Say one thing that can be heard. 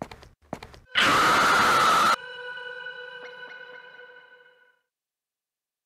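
A loud harsh scream blares suddenly, then rings away.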